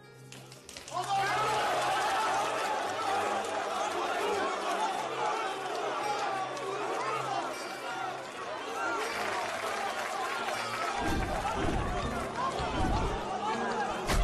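A large crowd of men cheers and shouts loudly.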